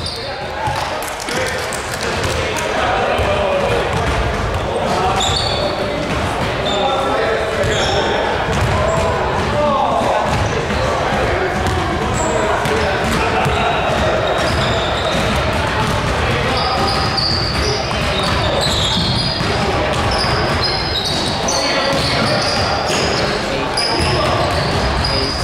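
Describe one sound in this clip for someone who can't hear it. Many voices chatter and call out in a large echoing gym.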